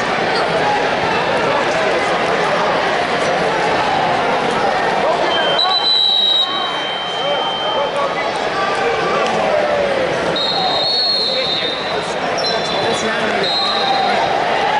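A large crowd chatters and calls out in an echoing arena.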